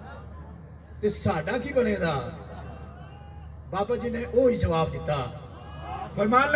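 A man speaks forcefully into a microphone over loudspeakers, echoing outdoors.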